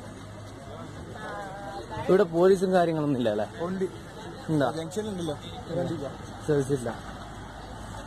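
A young man talks nearby with animation.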